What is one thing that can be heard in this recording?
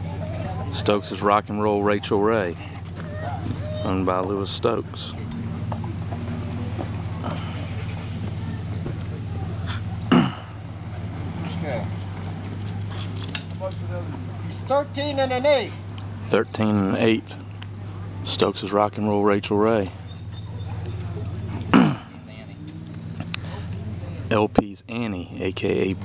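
Dogs bay and howl nearby, outdoors.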